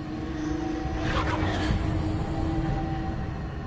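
A magical blast bursts with a crackling whoosh.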